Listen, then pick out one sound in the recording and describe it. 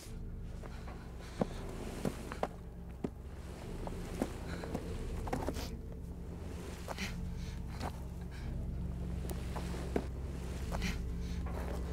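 Footsteps crunch slowly on pebbles.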